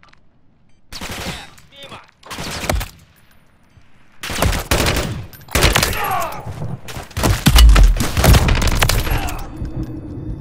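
Rapid rifle gunfire bursts out loudly, close by.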